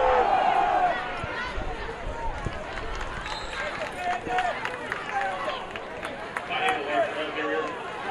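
A large crowd murmurs and shouts in a stadium.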